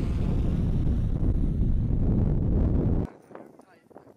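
Strong wind rumbles against the microphone outdoors.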